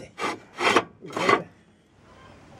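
A hand knocks on wooden boards three times.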